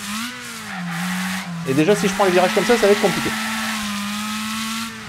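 A racing car engine hums steadily and shifts in pitch.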